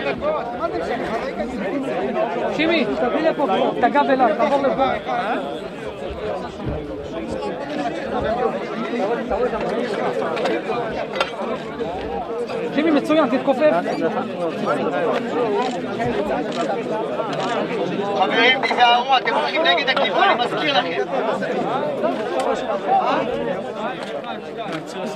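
A large crowd of men murmurs and chants outdoors.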